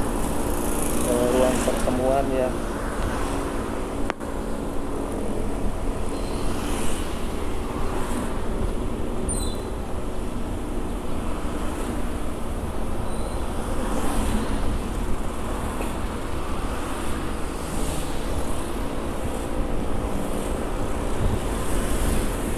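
Motorcycle engines buzz past nearby.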